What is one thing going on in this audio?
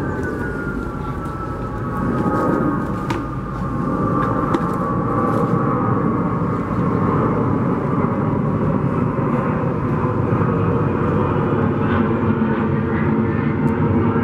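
A bear gnaws and scrapes at a wooden log.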